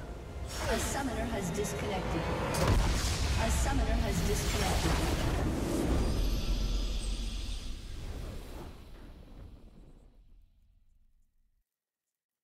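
A triumphant victory fanfare plays and fades away.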